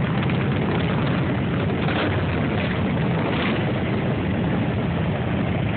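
Several motorcycle engines idle and rumble loudly nearby.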